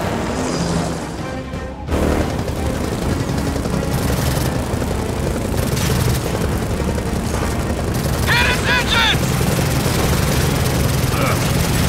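A helicopter's rotors thump with a low, steady roar.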